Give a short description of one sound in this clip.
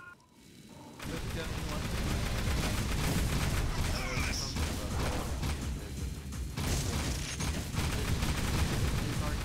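Blasts boom and crackle.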